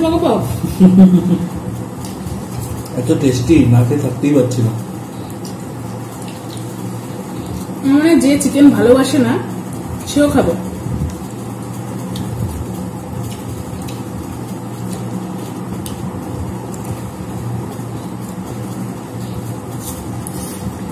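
Fingers squish and mix rice on plates.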